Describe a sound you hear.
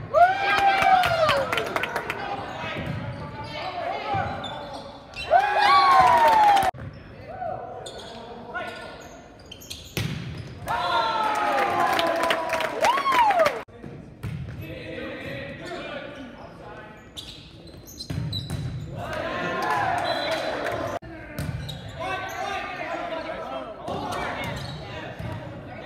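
Young men shout and call to each other in an echoing gym.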